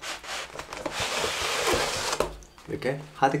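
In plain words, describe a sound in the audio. A cardboard sleeve slides off a box with a scraping hiss.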